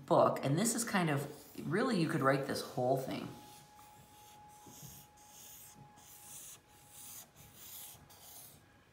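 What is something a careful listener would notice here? A marker scratches and squeaks across paper.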